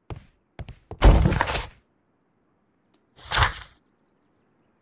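Pages of a book flip.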